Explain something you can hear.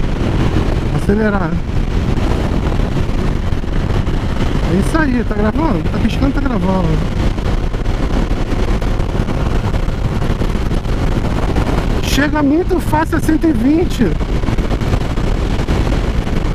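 Wind rushes loudly past at speed.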